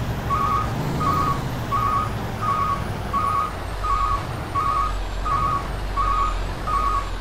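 A truck's reversing alarm beeps steadily.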